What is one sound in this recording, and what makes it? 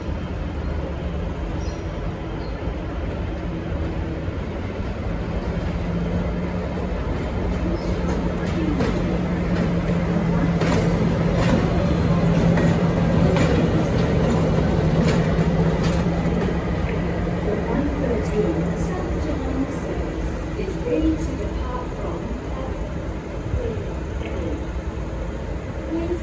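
A diesel locomotive engine rumbles steadily, growing louder and then fading.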